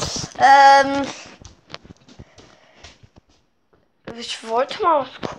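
A boy speaks loudly and with animation, close by.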